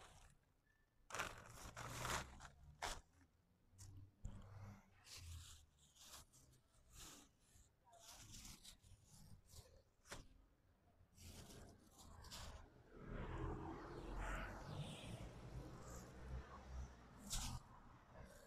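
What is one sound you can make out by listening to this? Plastic shopping bags rustle and crinkle as they are handled.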